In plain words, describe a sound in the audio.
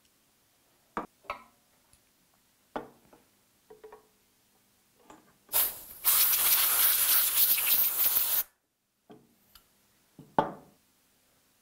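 Metal parts clack and knock as they are handled.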